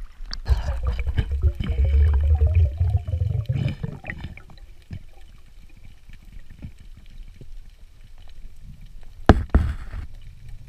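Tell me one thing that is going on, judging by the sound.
Water rumbles and gurgles, heard muffled underwater.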